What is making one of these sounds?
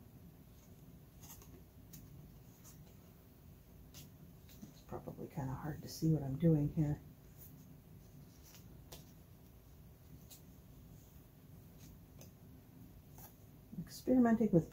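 Weaving cards click and clack against each other.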